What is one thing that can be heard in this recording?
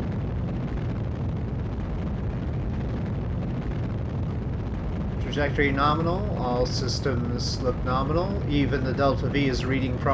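A rocket engine roars steadily.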